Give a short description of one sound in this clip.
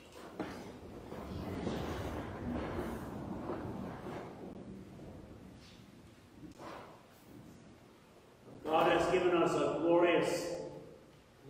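An elderly man speaks steadily through a microphone in a large echoing hall.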